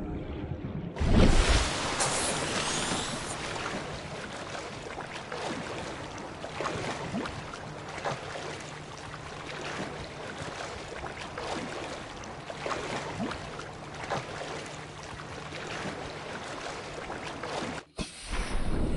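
Waves slosh and lap close by.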